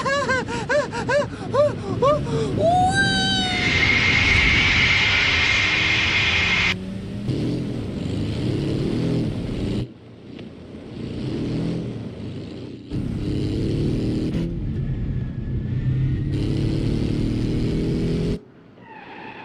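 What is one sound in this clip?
A car engine hums and revs as a vehicle drives.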